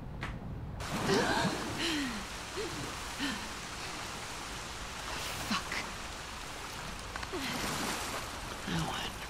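A man breathes heavily after surfacing.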